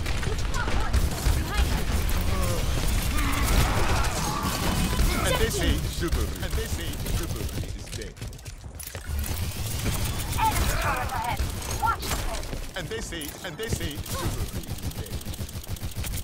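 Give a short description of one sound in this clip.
Pistols fire in rapid bursts.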